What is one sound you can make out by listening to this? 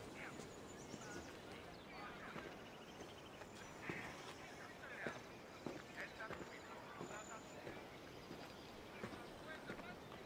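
Footsteps climb stone steps at a steady walking pace.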